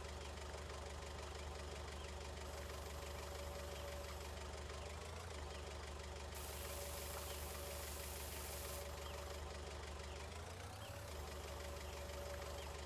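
A tractor engine hums steadily and changes pitch as it works.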